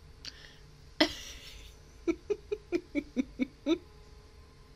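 A young woman laughs in short bursts close to a microphone.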